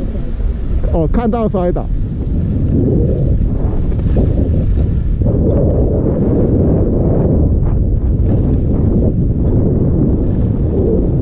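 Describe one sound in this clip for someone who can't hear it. Wind rushes and buffets steadily while skiing downhill.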